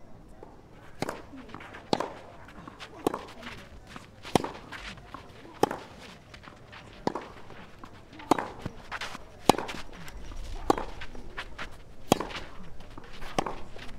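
A tennis ball is struck sharply by rackets, back and forth in a rally.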